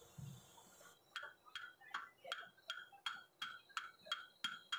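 A metal lathe chuck is turned by hand with a rapid, regular clicking.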